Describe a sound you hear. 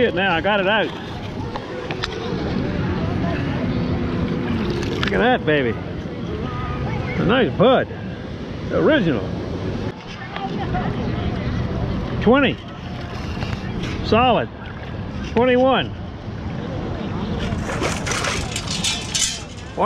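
Water sloshes around wading feet.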